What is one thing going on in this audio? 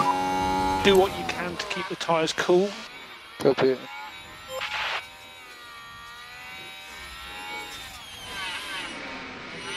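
A racing car engine whines at high speed, shifting gears up and down.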